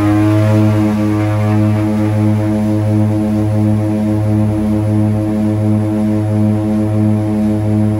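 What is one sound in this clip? Aircraft engines drone loudly and steadily from close by, with a pulsing hum.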